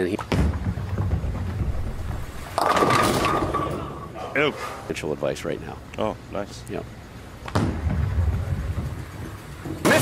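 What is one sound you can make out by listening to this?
A bowling ball rumbles down a wooden lane.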